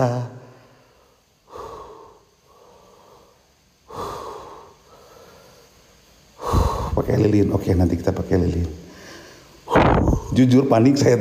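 A man speaks close by in a hushed, tense voice, with pauses.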